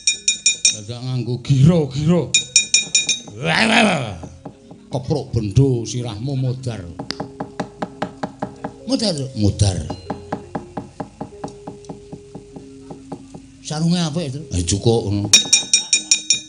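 A man speaks and sings in changing character voices, close by.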